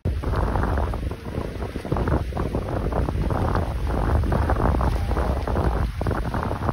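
Water splashes against the side of a small boat.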